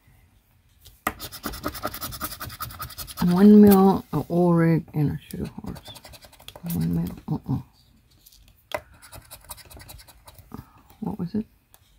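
A plastic chip scrapes briskly across a scratch card.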